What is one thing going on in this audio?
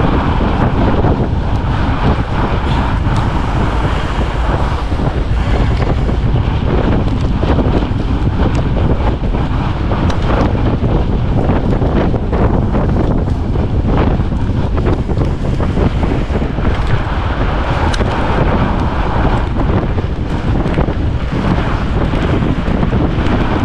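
Wind rushes loudly past the microphone.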